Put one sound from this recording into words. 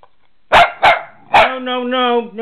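A dog barks sharply a few times close by.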